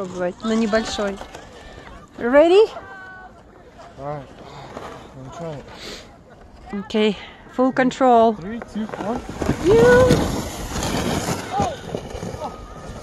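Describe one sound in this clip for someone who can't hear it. A plastic sled scrapes and hisses over snow.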